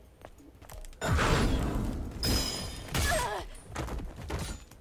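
Blades slash and strike with heavy impacts.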